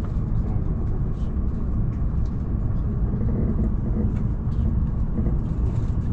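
The train begins to pull away and speeds up.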